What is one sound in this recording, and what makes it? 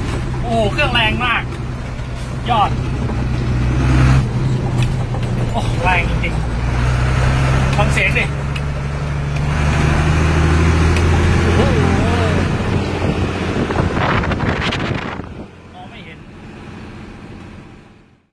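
A man talks with animation close to a phone microphone.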